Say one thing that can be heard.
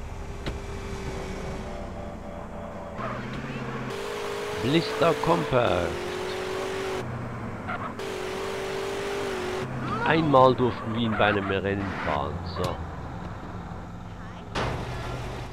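A car engine revs and hums as a car drives fast.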